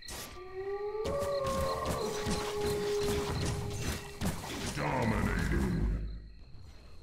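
Blows clash and thud in a fight.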